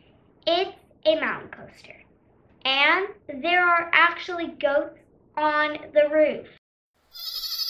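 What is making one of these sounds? A young girl speaks with animation, close to a microphone.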